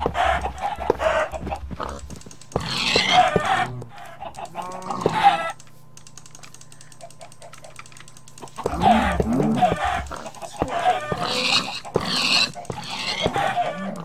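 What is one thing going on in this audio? Pigs grunt and squeal as they are struck.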